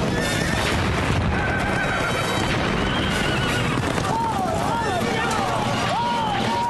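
Horses gallop with thudding hooves.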